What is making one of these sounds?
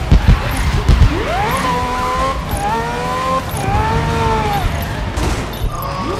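Tyres screech as a racing car slides through a corner.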